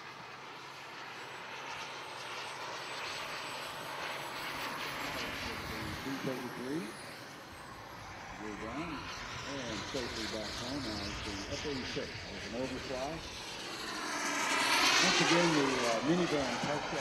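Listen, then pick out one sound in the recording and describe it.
A small jet engine whines loudly and swells as it draws close.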